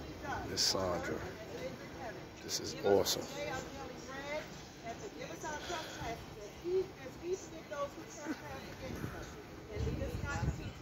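A crowd of children and adults chatter nearby outdoors.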